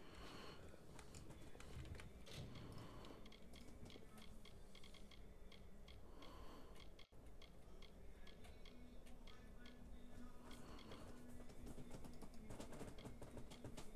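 Menu selections click in quick succession.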